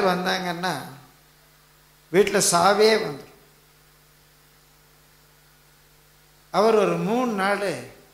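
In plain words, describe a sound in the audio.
An elderly man sings in short phrases through a microphone and loudspeakers.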